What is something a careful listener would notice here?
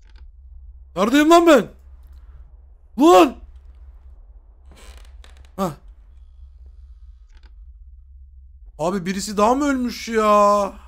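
A man speaks with animation close to a microphone, with sudden loud exclamations.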